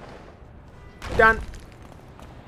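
A heavy body lands hard on pavement with a thud.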